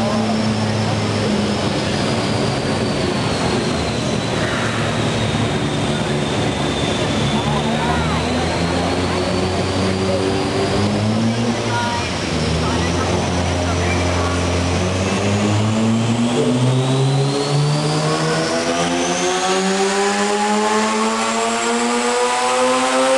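A car engine roars loudly in a large hall, revving higher toward the end.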